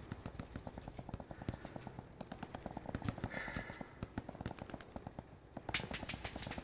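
Footsteps thud quickly through grass.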